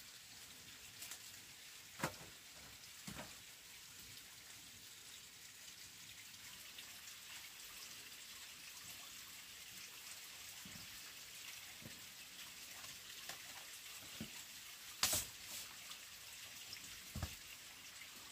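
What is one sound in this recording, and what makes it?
Wooden sticks knock and clatter sharply.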